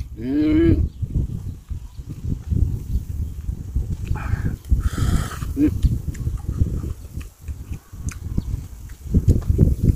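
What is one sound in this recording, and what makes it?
Fresh leaves rustle and snap in a man's hands.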